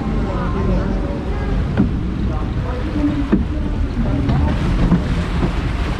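Water rushes and splashes along a flume channel.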